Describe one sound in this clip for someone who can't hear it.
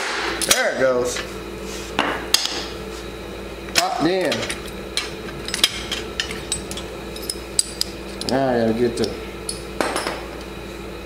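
Metal tools clink against an engine.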